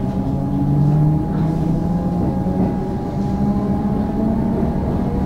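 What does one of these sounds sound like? Train wheels rumble on the rails.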